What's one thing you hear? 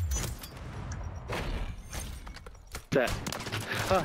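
A sniper rifle fires a loud single shot.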